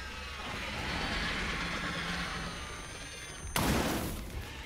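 A handheld radio device crackles with static.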